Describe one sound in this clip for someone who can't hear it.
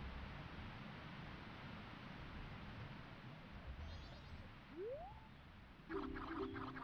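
A low watery rumble drones steadily in a video game.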